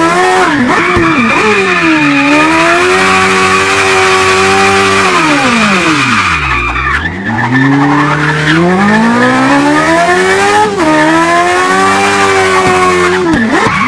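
A car engine revs hard, rising and falling as gears change.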